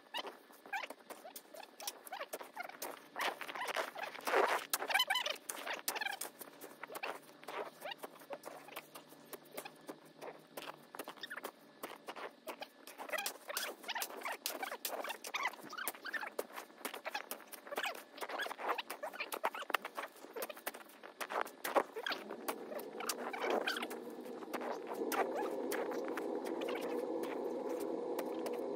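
A snow shovel scrapes and thumps through packed snow.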